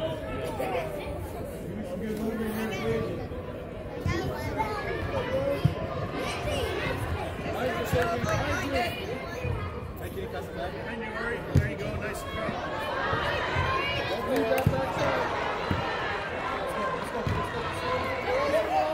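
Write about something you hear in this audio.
Young girls shout to each other while playing.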